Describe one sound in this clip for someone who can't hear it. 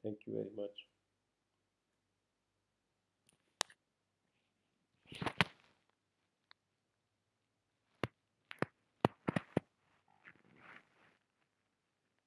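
A man speaks calmly into a microphone, in short bursts with long pauses.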